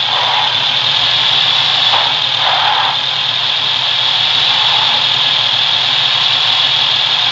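A vehicle engine hums steadily as it drives along a dirt road.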